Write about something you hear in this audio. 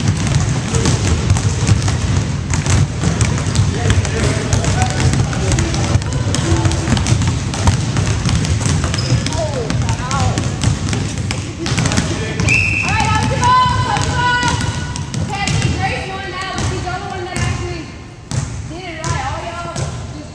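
Basketballs bounce on a hard floor, echoing in a large hall.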